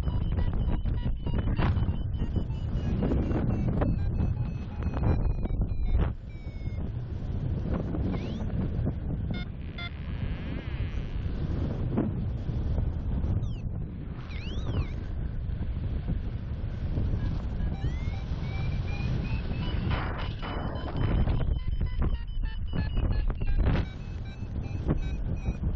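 Wind rushes and buffets loudly past, high in open air.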